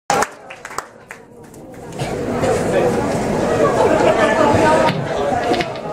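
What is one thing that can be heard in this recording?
Drums crash and thump.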